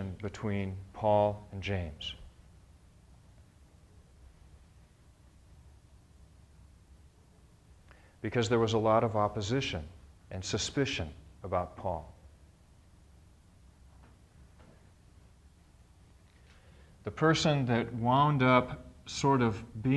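A middle-aged man speaks calmly, with pauses.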